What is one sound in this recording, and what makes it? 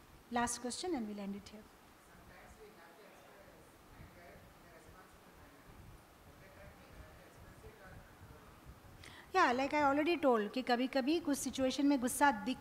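A woman sings into a microphone, heard through loudspeakers.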